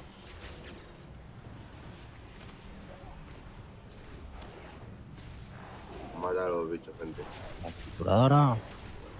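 Magic spells whoosh and crackle in a video game battle.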